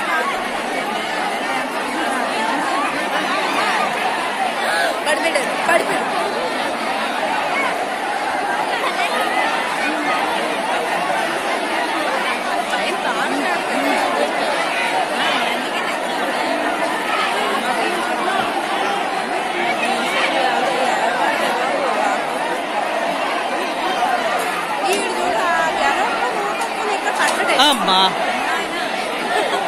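A large crowd of men and women shouts and clamours loudly outdoors.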